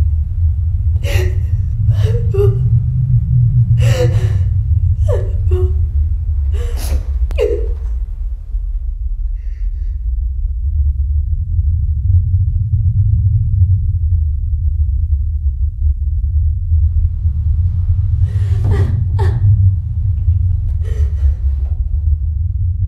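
A young woman sobs and wails loudly nearby.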